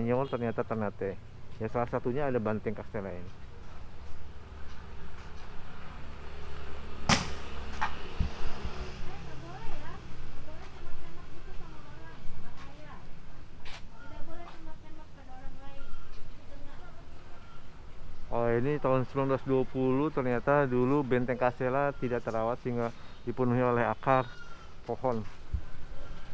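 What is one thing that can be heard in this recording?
A man speaks calmly and close by.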